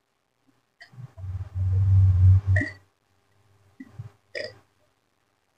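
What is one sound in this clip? A man gulps a drink loudly.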